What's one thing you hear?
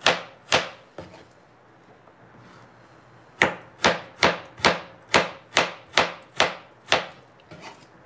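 A knife chops firmly against a cutting board in quick, even strokes.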